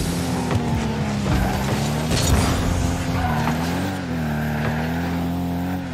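A car engine hums steadily and shifts in pitch.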